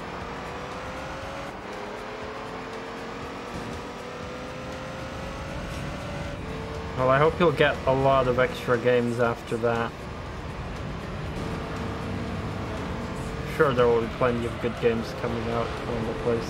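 A racing car engine drones and slowly climbs in pitch.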